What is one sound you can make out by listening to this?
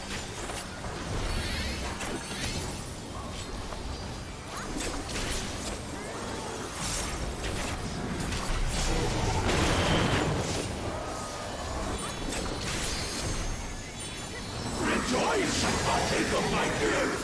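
Spell effects crackle and whoosh in a video game battle.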